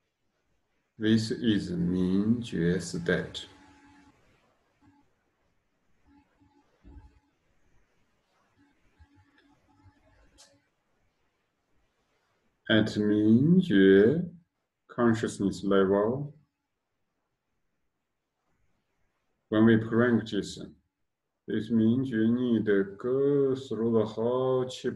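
A man sings slowly and softly, close to a microphone, with pauses between phrases.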